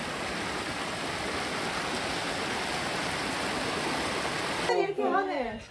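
Water rushes and splashes over rocks in a shallow stream.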